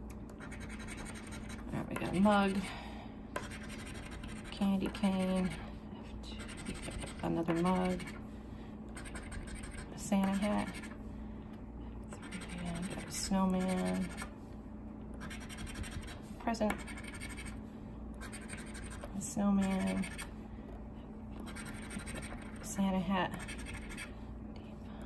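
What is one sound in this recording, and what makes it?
A coin scratches across a card.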